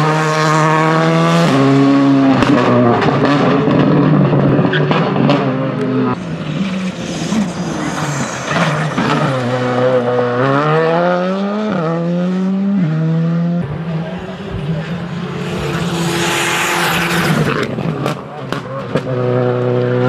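A car's exhaust pops and crackles sharply.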